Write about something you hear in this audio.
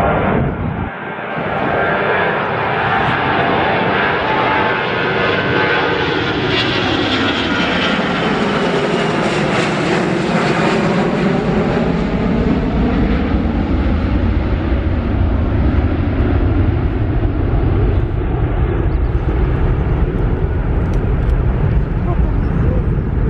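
A jet airliner roars loudly overhead as it climbs, its engine whine sliding down in pitch as it passes.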